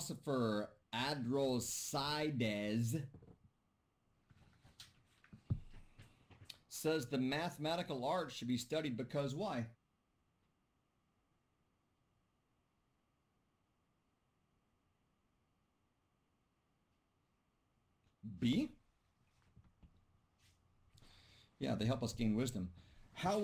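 A middle-aged man speaks calmly into a microphone, heard as if over an online call, pausing at times.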